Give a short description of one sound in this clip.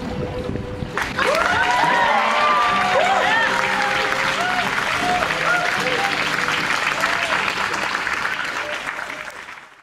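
A crowd cheers and whoops loudly outdoors.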